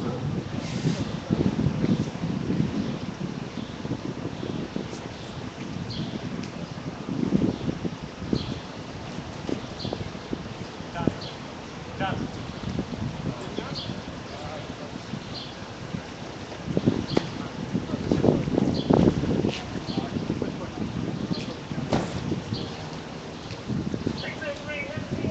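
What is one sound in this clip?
A crowd of men and women talks and murmurs outdoors at a distance.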